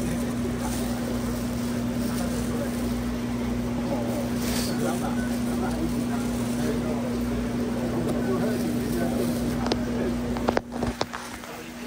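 A refrigerated display hums steadily.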